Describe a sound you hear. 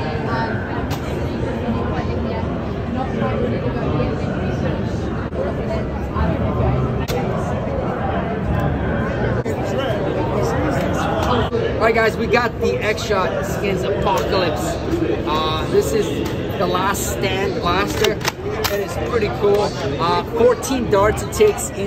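A crowd murmurs in a large, busy hall.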